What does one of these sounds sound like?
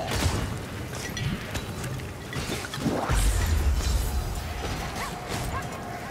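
Weapons strike and thud against creatures.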